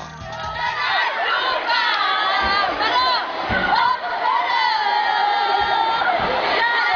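A group of teenage girls sing and shout together loudly, close by.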